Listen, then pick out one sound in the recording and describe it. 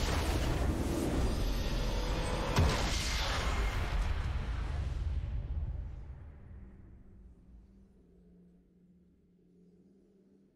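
A triumphant victory fanfare swells and then slowly fades.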